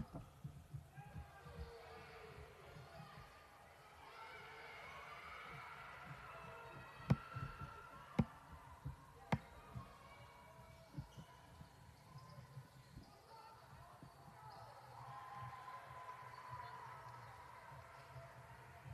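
A crowd murmurs and calls out.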